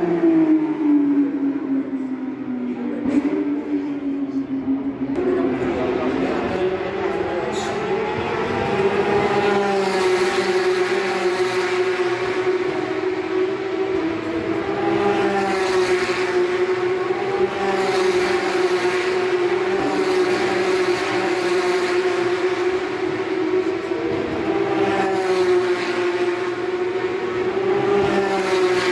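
Racing car engines roar loudly as cars speed past.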